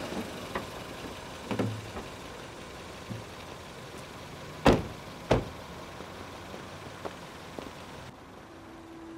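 A car engine idles quietly.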